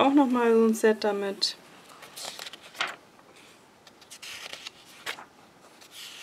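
Glossy paper pages rustle and flip as they are turned.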